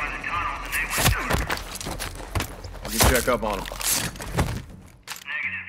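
Heavy thuds and a scuffle sound up close.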